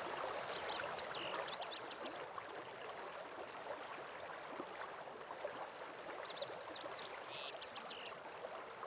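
Water rushes steadily from a distant waterfall.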